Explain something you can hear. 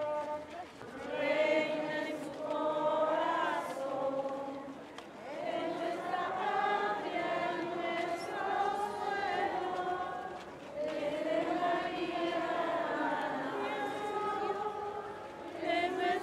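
A crowd sings a slow hymn together outdoors.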